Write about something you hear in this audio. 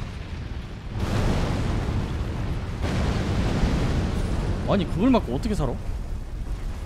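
Flames roar and crackle in a burst of fire.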